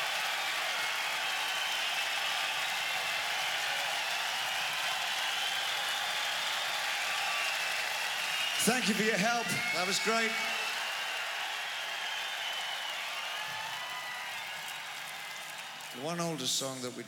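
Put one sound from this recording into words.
A large crowd cheers and whistles in a big echoing hall.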